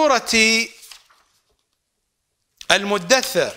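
Paper pages rustle as a man turns them.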